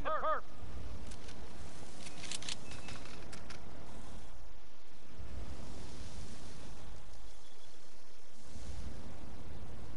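Leaves rustle as someone pushes through dense plants.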